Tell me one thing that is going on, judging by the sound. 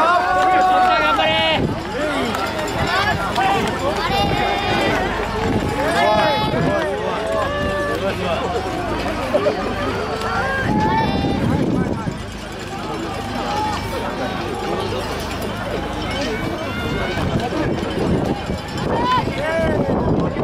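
A crowd of spectators cheers and shouts loudly nearby.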